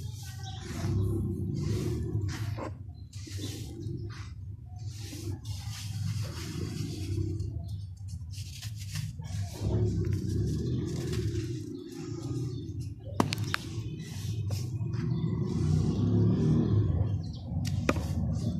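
Hands crumble dry sand clumps with a soft gritty crunch.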